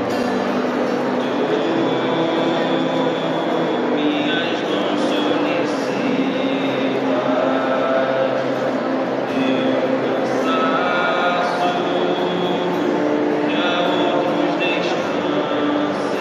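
A large crowd of men and women sings together in a large echoing hall.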